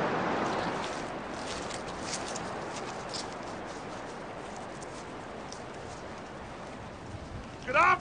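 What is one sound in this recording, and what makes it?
Footsteps tread on grass outdoors.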